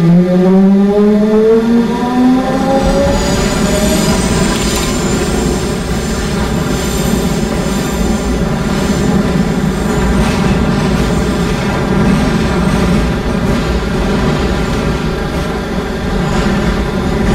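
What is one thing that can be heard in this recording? A subway train rumbles and clatters steadily along the tracks through a tunnel.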